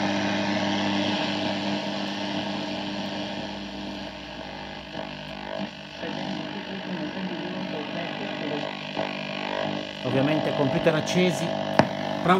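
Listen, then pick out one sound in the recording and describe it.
A radio tuning knob is turned, shifting the sound between stations.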